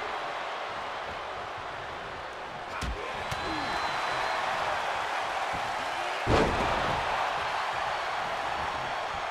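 A large crowd cheers and roars steadily in a big arena.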